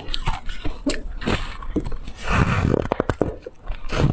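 A young woman bites into soft cake with a soft crunch.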